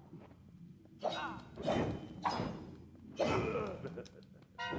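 Blows clash in a fight.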